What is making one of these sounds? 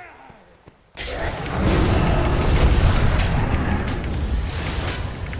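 Magic spells whoosh and crackle loudly during a fight.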